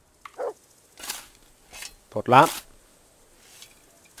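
A shovel digs into soft earth.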